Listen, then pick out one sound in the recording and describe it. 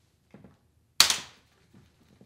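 A stroller latch snaps with a sharp, loud click.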